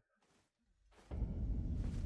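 Footsteps tread over grass and dirt.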